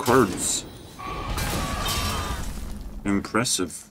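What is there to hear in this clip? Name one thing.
A bright magical chime rings out as a new turn begins.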